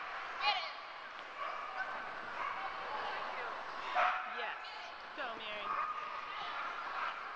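A crowd chatters in a large echoing hall.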